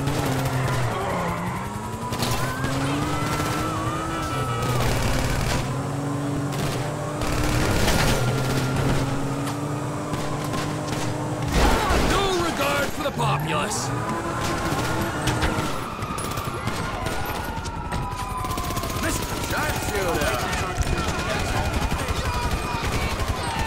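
Police sirens wail and rise and fall.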